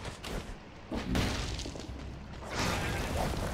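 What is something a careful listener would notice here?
A magic blast bursts with a loud whoosh.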